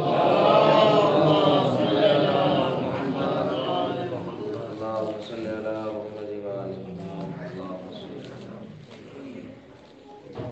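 A man chants loudly and melodiously into a microphone.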